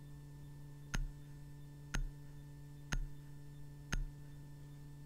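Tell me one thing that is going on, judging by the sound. A countdown timer beeps once a second.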